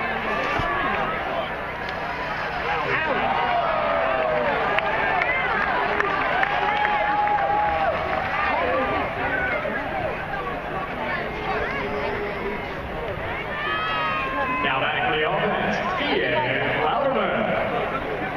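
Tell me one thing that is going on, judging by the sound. Many voices in the stands whoop and shout with excitement.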